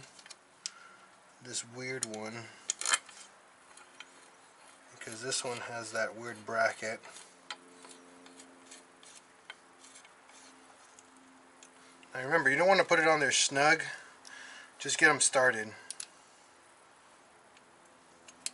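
Metal parts clink and click faintly.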